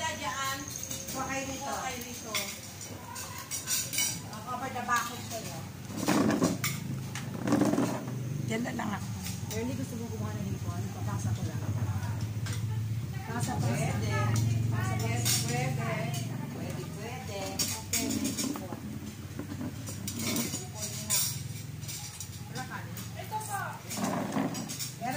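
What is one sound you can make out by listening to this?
Several middle-aged and elderly women chat and laugh together close by.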